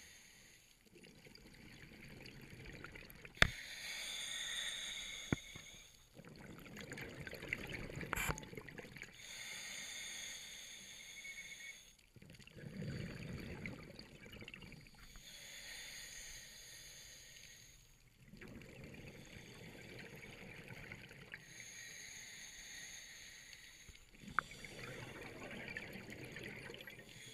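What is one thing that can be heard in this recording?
A diver breathes in and out slowly through a regulator underwater.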